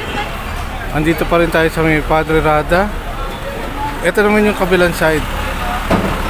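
A man talks nearby in the crowd.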